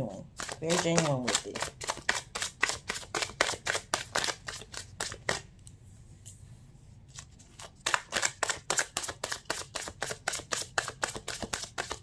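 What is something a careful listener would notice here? Playing cards flick and snap rapidly in a shuffle, close by.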